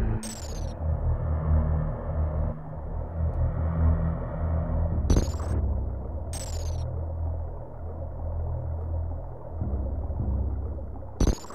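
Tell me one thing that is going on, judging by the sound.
Deep rumbling game music plays steadily.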